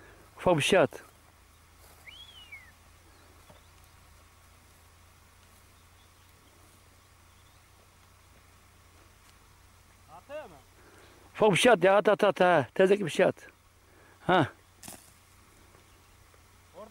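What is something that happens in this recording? A snake slithers softly over dry grass and soil.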